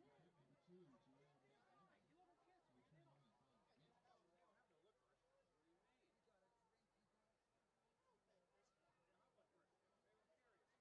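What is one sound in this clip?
A large crowd chatters and calls out in an open stadium.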